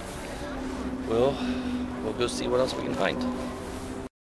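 A man speaks close by, casually.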